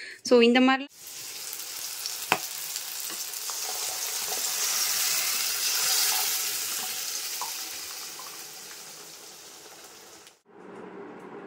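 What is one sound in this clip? Batter sizzles as it is poured into a hot pan.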